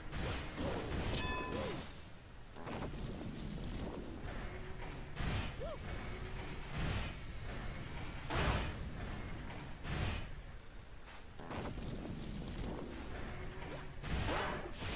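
Heavy thuds slam repeatedly into wood.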